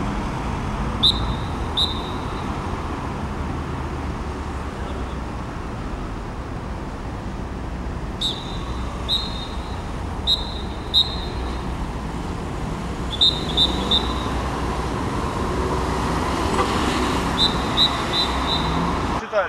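A traffic officer blows short, shrill whistle blasts.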